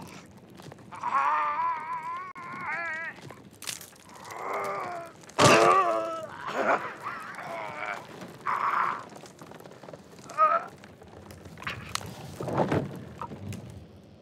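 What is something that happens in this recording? A man groans and cries out in pain up close.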